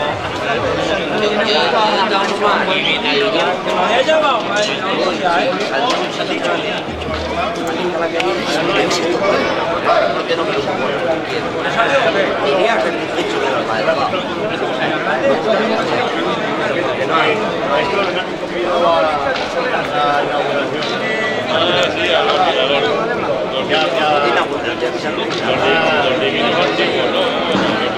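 A crowd of men and women chatters and shouts outdoors.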